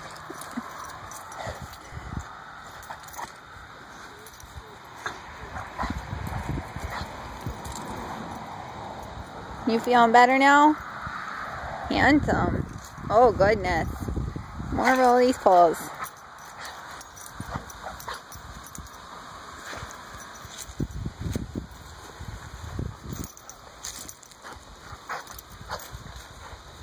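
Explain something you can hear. A dog rolls and wriggles on grass, rustling it.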